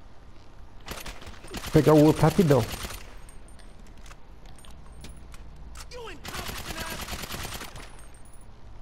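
A rifle fires in rapid bursts of gunfire.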